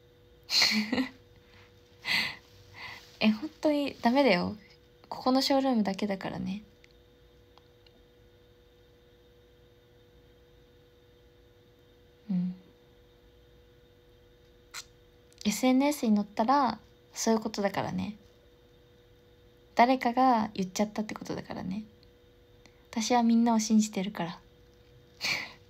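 A young woman talks close to a microphone, calmly and with pauses.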